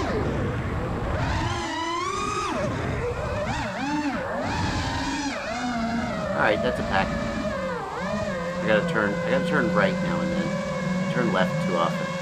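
Small drone motors whine loudly, their pitch rising and falling quickly as the drone swoops.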